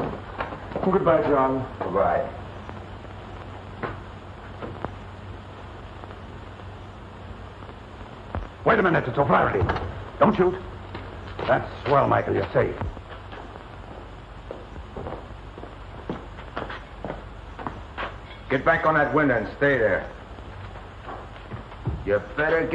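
A man speaks in a low, tense voice, with a slight echo.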